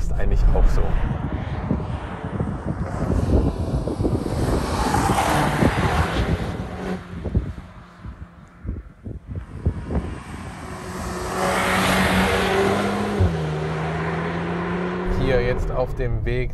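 A car engine roars as the car speeds past on a road.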